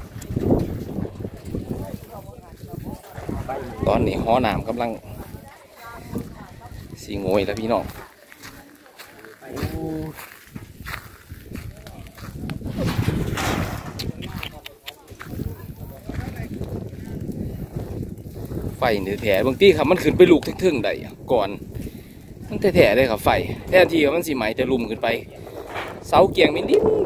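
A fire crackles and burns nearby.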